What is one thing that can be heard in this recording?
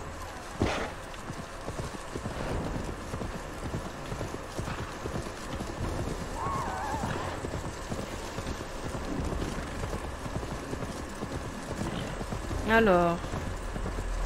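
A horse gallops, hooves thudding on grass.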